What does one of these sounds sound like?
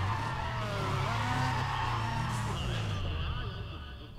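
Tyres screech in a smoky burnout.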